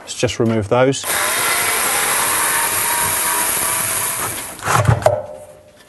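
A cordless drill whirs loudly as it drives out a screw.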